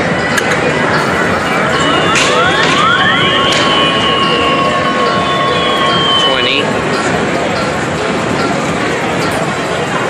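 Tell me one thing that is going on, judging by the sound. Many arcade machines clatter and hum in a noisy hall.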